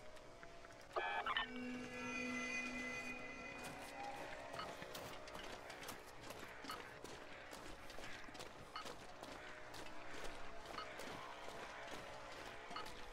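A handheld radio detector crackles with rapid, uneven static clicks.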